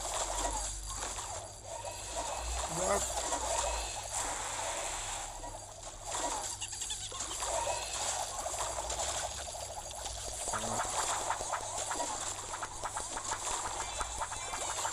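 Game sound effects pop and chime throughout.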